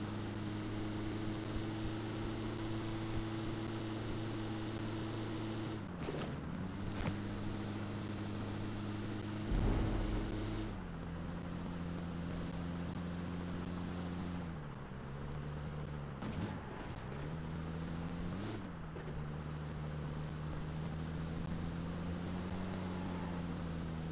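A vehicle engine hums steadily, shifting pitch as it drives.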